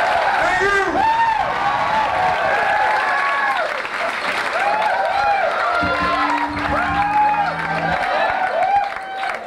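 A rock band plays live, with electric guitars and drums.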